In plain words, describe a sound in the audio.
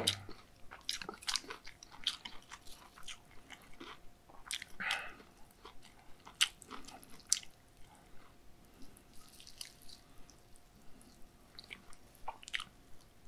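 Chopsticks click lightly against a dish.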